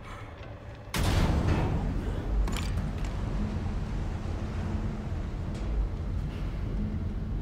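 A lift rumbles steadily as it moves.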